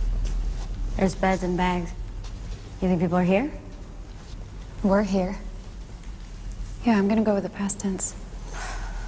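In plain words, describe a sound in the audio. A woman speaks in a low, calm voice.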